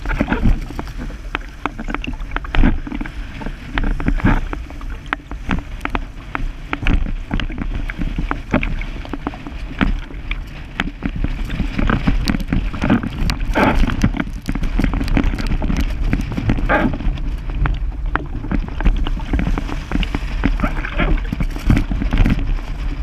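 A sail flutters and snaps in the wind.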